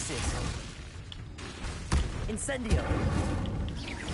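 Fire bursts with a whoosh.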